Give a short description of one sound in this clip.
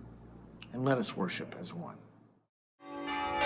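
A middle-aged man speaks calmly into a clip-on microphone.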